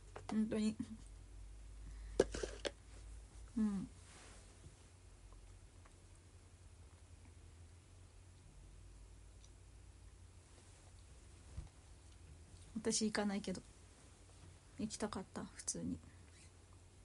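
A young woman speaks softly and close by, in short bursts.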